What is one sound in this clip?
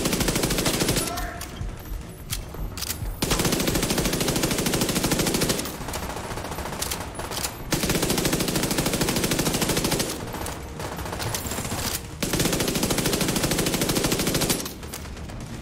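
An automatic rifle fires in long, rapid bursts.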